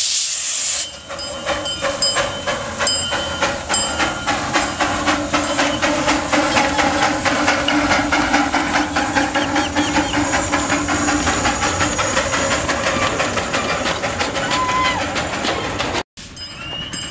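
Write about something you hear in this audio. Train wheels clatter over the rails.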